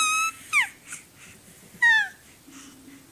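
A baby squeals and coos up close in short high-pitched bursts.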